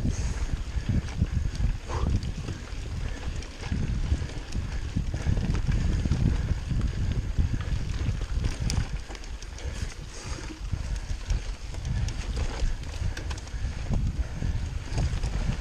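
Bicycle parts clatter and click over bumps.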